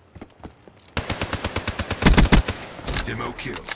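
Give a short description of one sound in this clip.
A rifle fires a fast burst of shots.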